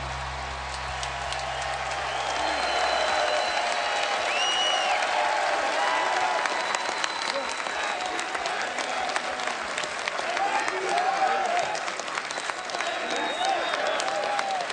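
A crowd claps its hands.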